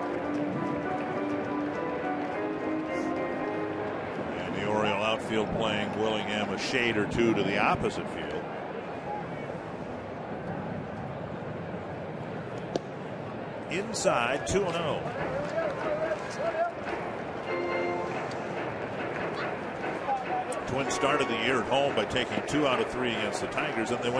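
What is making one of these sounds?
A large stadium crowd murmurs outdoors.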